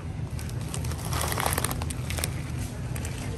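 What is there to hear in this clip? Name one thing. A plastic bag of fried onions rustles as it is lifted.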